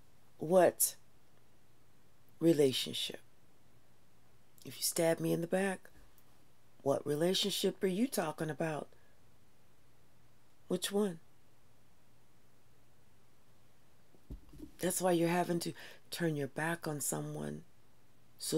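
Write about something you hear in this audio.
A woman talks calmly and expressively, close to a microphone, with pauses between phrases.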